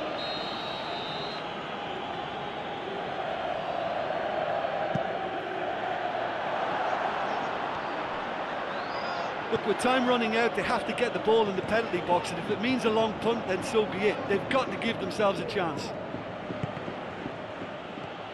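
A stadium crowd roars steadily in the distance.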